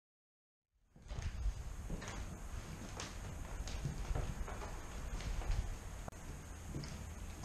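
Footsteps echo across a wooden floor.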